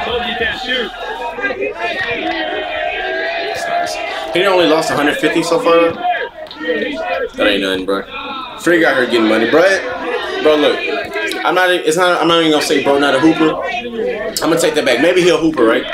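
A young man talks loudly to a crowd outdoors.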